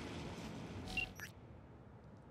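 A soft electronic click sounds as a menu opens.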